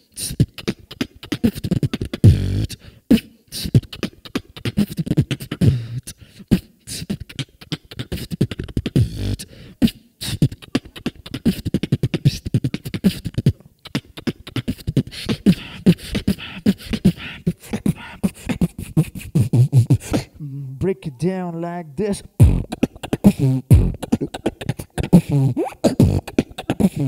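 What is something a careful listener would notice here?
A young man beatboxes fast, punchy rhythms into a microphone.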